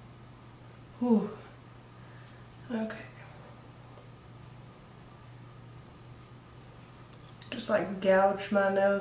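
A young woman speaks close to a microphone in short bursts, with pauses.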